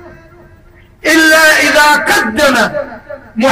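A large crowd chants loudly in unison outdoors.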